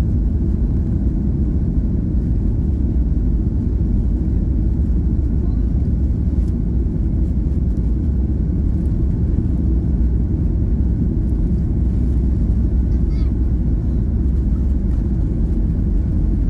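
Aircraft wheels rumble along a runway.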